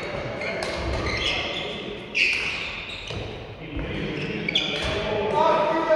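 Badminton rackets strike shuttlecocks with sharp pops in a large echoing hall.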